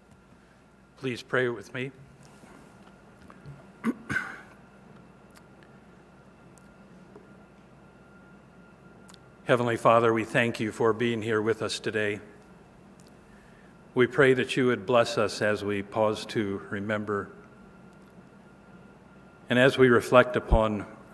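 A middle-aged man speaks calmly and deliberately through a microphone in a large room.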